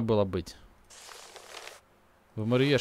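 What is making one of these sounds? Paper rustles briefly.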